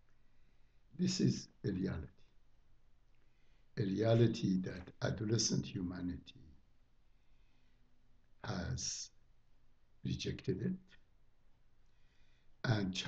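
An elderly man speaks calmly through a microphone, with pauses between phrases.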